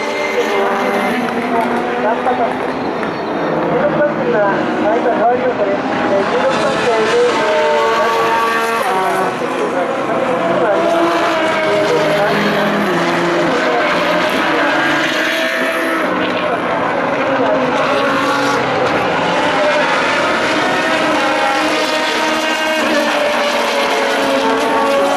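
Racing car engines roar loudly as the cars speed past, rising and falling in pitch through gear changes.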